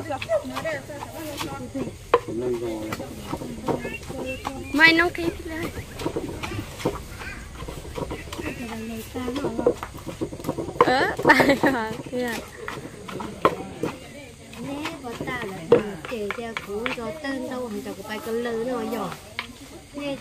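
Women talk and laugh nearby.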